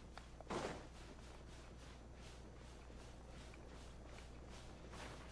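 Quick footsteps patter on soft sand.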